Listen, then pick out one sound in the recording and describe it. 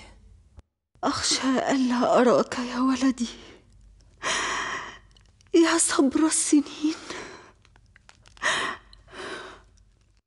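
A young woman speaks weakly and with distress, close by.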